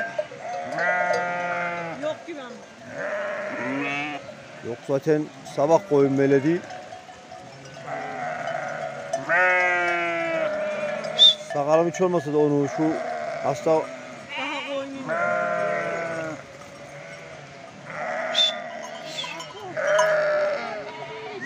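Many sheep bleat loudly and constantly close by.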